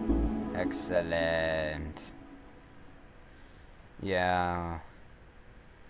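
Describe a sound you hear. Short electronic chimes sound from a game menu.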